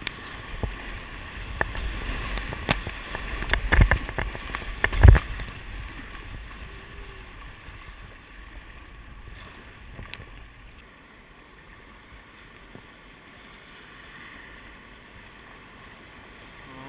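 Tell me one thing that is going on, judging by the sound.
River rapids rush and churn around a kayak.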